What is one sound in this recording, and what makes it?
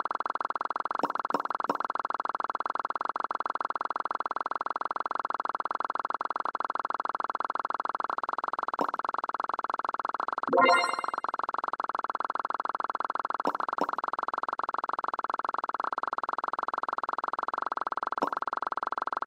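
Short electronic chimes ring out now and then.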